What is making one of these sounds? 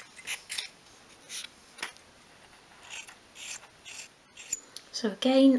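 A small hand drill twists and scrapes into soft wood.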